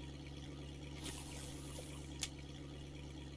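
A fishing reel whirs briefly.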